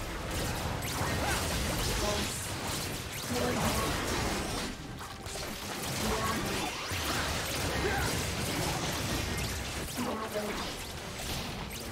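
Game spell effects and attacks crackle and burst in a fight.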